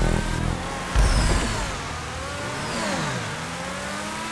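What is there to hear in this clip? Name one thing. A car's tyres screech as it drifts around a corner.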